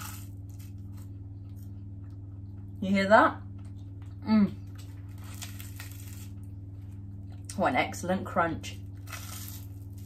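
A woman bites and chews a pastry close to the microphone.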